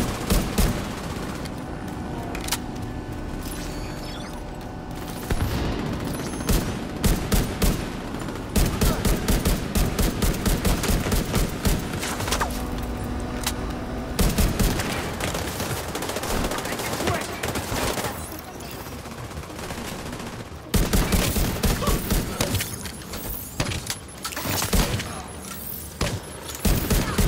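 Bullets ping and thud against metal.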